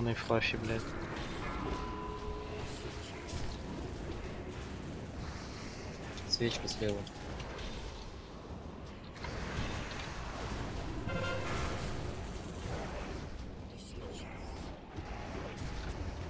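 Magic spells crackle and whoosh amid clashing combat sounds.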